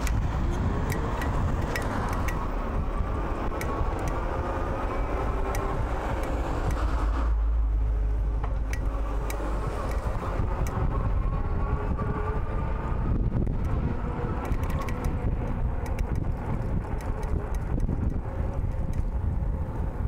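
A bicycle's tyres roll and whir on smooth asphalt.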